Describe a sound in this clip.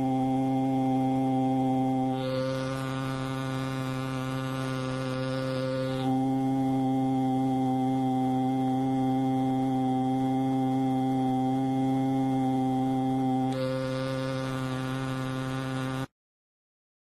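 A loudspeaker plays a steady, low buzzing tone.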